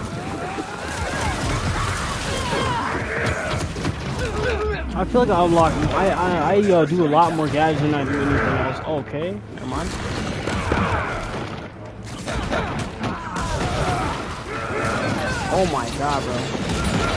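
Punches and blows land in a fast fight.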